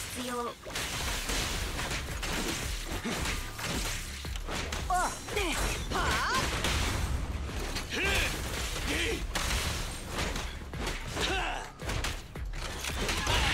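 Punches and magic blasts crack and thud in quick succession.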